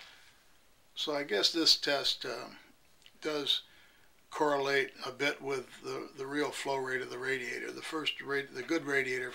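An elderly man speaks calmly, close to the microphone.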